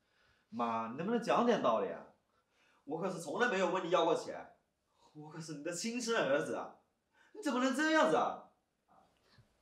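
A young man speaks up close.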